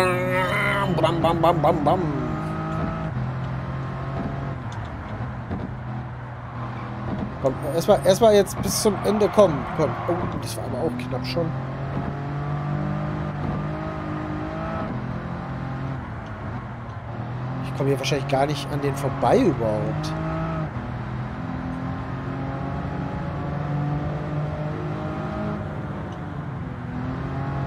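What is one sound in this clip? A racing car engine drones steadily, rising and falling in pitch as it shifts gears.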